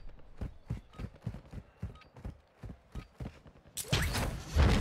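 Quick footsteps patter on dry ground.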